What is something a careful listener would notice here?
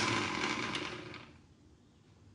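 A blender whirs and winds down.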